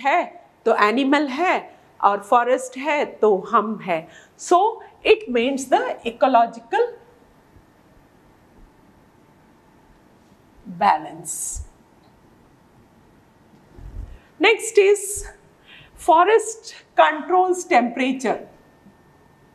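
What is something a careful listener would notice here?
A woman speaks calmly into a close microphone, explaining.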